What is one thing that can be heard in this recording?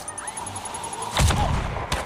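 A blast bursts with a loud boom.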